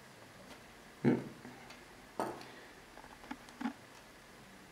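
A small metal caliper clicks and knocks against a table top.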